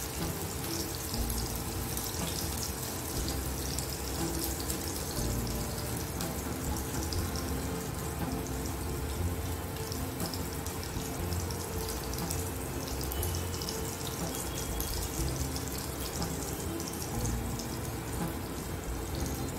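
Hands squish raw minced meat.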